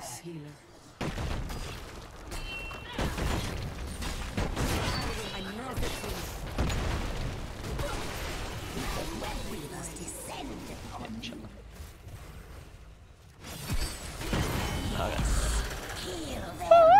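Game sound effects of spells and blasts crackle and boom.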